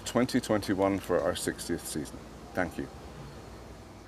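An elderly man speaks calmly and clearly close by.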